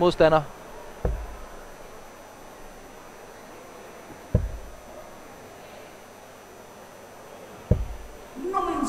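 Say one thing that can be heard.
Darts thud one by one into a dartboard.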